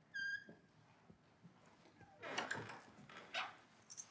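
A house door creaks open.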